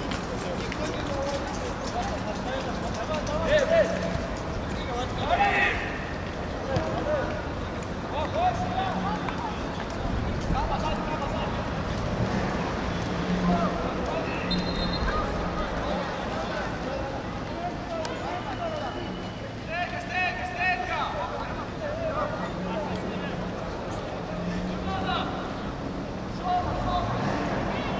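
A crowd murmurs and calls out from the stands.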